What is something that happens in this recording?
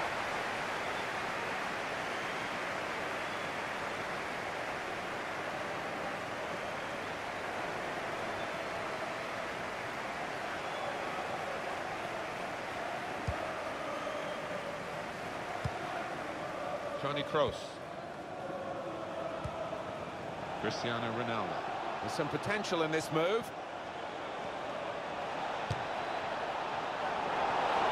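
A large stadium crowd roars and murmurs.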